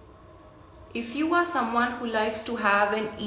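A young woman speaks with animation up close.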